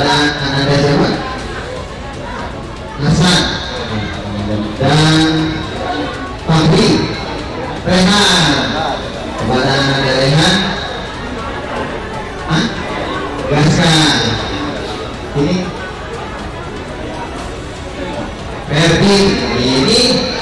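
A young man speaks into a microphone over a loudspeaker, announcing in bursts with pauses.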